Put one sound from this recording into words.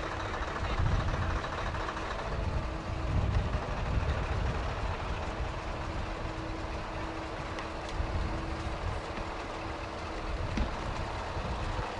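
A heavy truck engine rumbles steadily as the truck rolls slowly closer.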